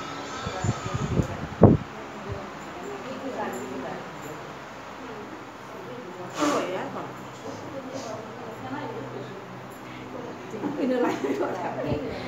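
Bare feet pad softly across a hard floor.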